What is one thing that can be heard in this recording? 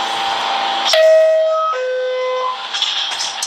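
A two-tone chime sounds as a train's doors close.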